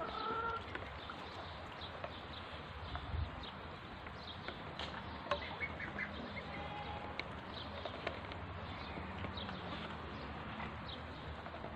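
Young birds chirp and peep softly.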